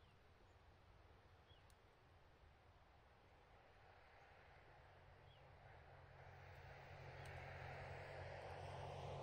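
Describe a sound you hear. Wind blows over the water and through dry reeds, growing stronger.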